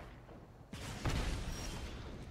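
A fiery blast bursts with a whoosh.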